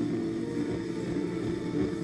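Torch flames crackle and hiss.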